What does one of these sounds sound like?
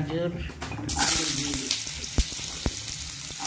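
Chopped vegetables hiss loudly as they drop into hot oil.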